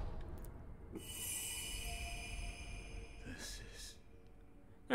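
A bright magical shimmer rings out and fades.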